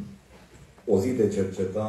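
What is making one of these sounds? A man begins speaking through a microphone in an echoing hall.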